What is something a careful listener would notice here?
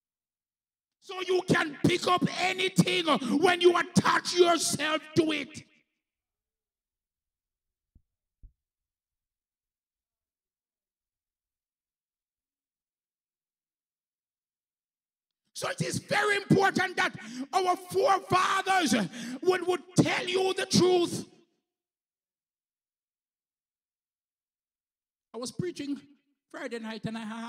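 A man preaches loudly and with passion into a microphone, heard through loudspeakers.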